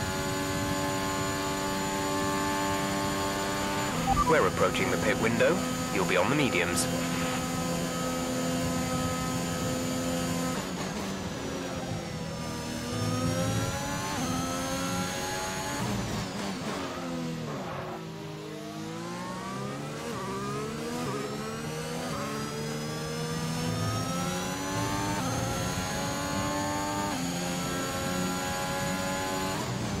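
A racing car engine whines at high revs, dropping and rising in pitch through the gear changes.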